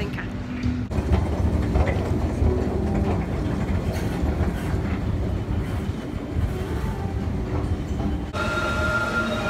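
An escalator rumbles steadily.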